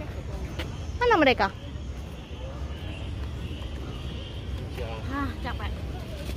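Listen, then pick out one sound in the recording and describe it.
A young woman speaks briefly in a high, lively voice close by.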